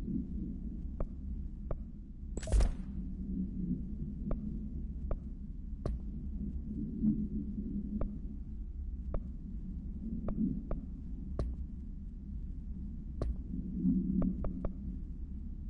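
Short soft menu clicks tick at uneven intervals.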